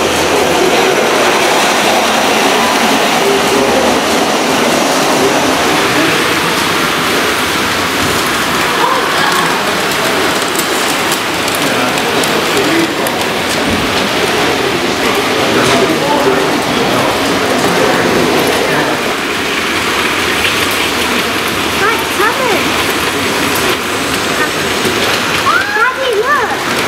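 Model trains rattle steadily along their tracks.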